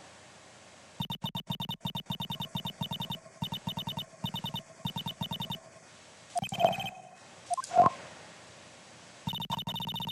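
Rapid electronic blips chatter as game dialogue types out.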